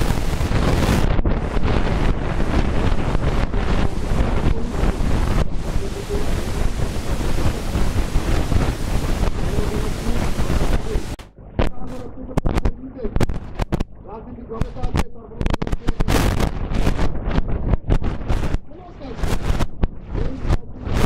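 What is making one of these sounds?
A middle-aged man speaks forcefully into a microphone, heard loud and distorted through a loudspeaker outdoors.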